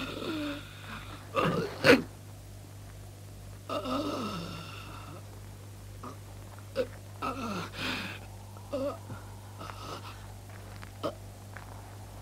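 A man groans and gasps in pain close by.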